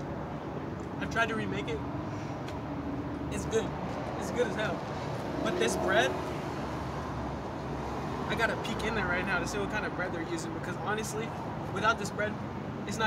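A young man talks casually and laughs close by.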